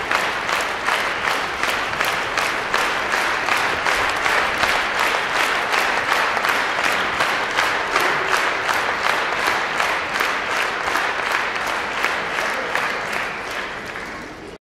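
An audience claps in rhythm in a large echoing hall, then fades.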